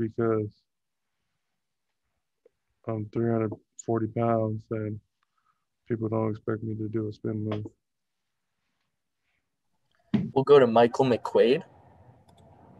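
A young man speaks calmly into a microphone, with pauses.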